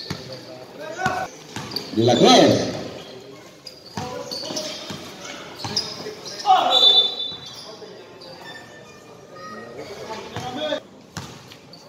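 Young men shout to each other during play, echoing in a large hall.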